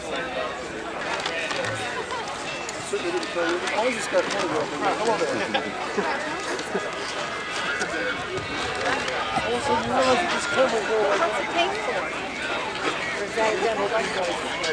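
A crowd of men and women chatters all around outdoors.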